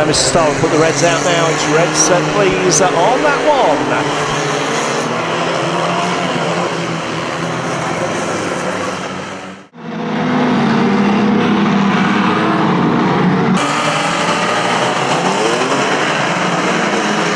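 Race car engines roar and rev loudly.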